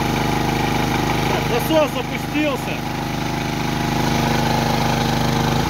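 A petrol generator engine runs with a steady, loud drone.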